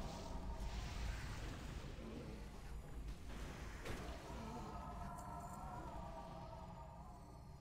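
Magic spells crackle and whoosh in a game.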